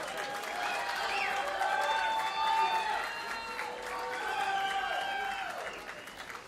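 A crowd in a large hall cheers and shouts loudly.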